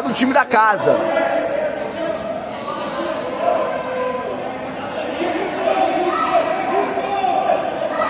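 A crowd of spectators chatters and calls out in an echoing indoor hall.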